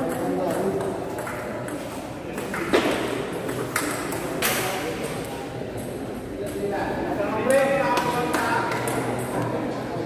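Men chatter in a large echoing hall.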